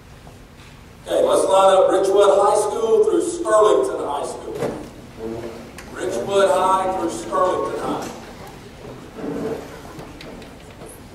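A man speaks calmly into a microphone, heard over loudspeakers in a large echoing hall.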